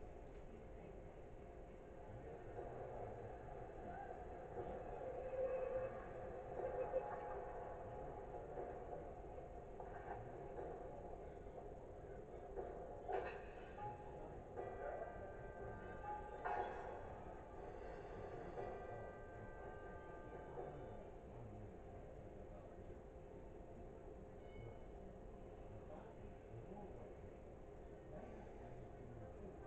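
Game music plays quietly from a television speaker.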